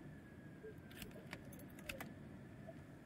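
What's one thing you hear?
A soft click sounds as a small item is picked up.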